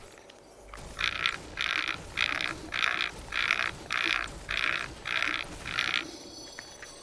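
A pickaxe strikes a hard surface again and again in a quick, even rhythm.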